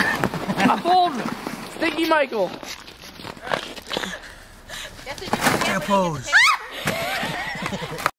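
A plastic sled scrapes over snow.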